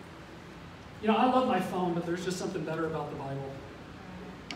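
A middle-aged man speaks calmly into a microphone through a loudspeaker in an echoing hall.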